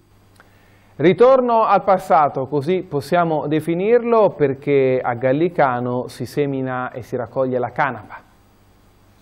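A man speaks calmly and clearly into a microphone, close by.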